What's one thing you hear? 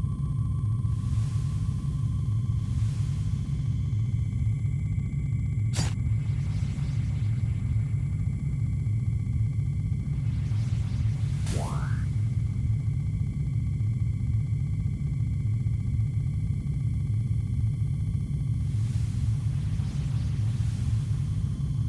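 A pistol fires several muffled shots.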